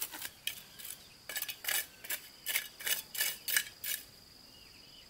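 A tool taps and scrapes on hard soil.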